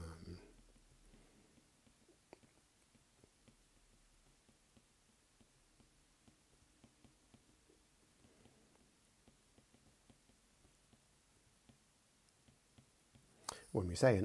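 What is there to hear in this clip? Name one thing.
A stylus taps and scratches softly on a tablet.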